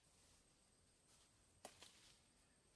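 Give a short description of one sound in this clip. A fruit stem snaps off a branch.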